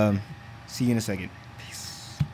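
A young man talks loudly and close up.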